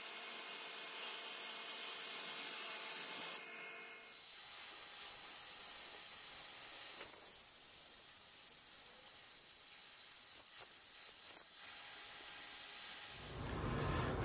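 A plasma torch hisses steadily as it cuts through metal.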